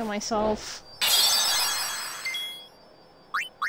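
A sword slashes with a bright, ringing burst.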